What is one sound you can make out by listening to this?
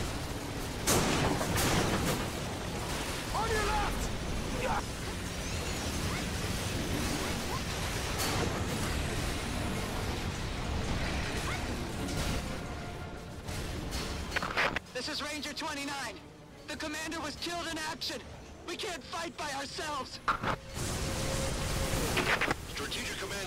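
Large explosions blast nearby.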